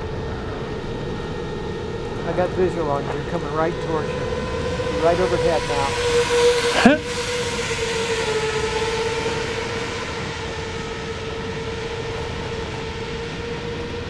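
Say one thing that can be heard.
A small drone's motors whine steadily, the pitch wavering up and down.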